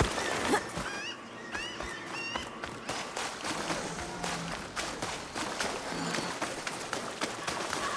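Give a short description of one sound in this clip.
Footsteps run through shallow water, splashing.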